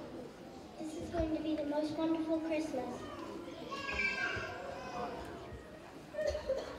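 A young girl sings alone into a microphone.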